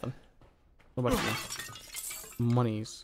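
A knife strike smashes a ceramic vase.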